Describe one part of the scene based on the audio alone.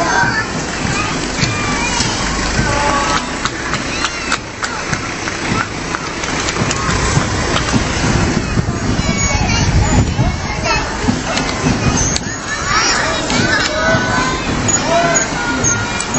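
A crowd of people chatter along the street outdoors.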